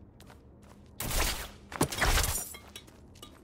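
A loud magical whoosh bursts and rumbles briefly.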